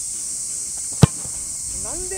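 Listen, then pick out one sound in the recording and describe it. A foot kicks a soccer ball with a sharp thump.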